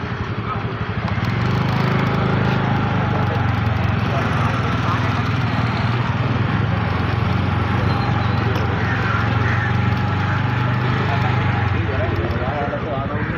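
A motor scooter engine hums steadily up close.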